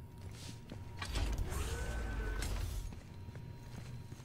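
A heavy metal door slides open with a loud hiss.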